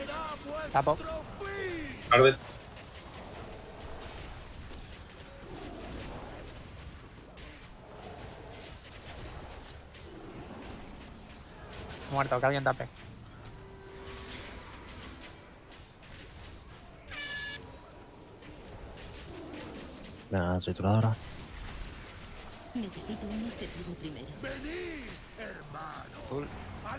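Fantasy spell effects chime and whoosh in short bursts.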